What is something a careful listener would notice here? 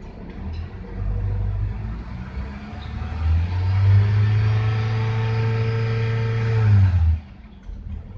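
A car engine starts, idles with a low hum, then stops.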